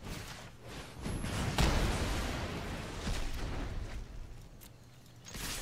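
A fiery spell whooshes and roars in a game.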